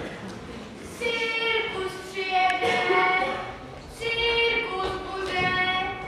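Children sing on a stage.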